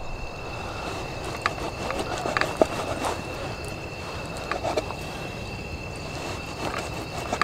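A knife cuts through meat on a wooden board.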